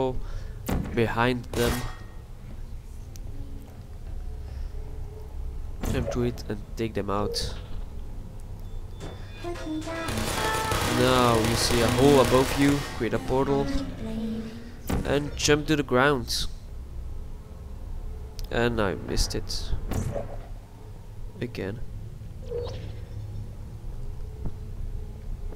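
A sci-fi gun fires with short, sharp zaps.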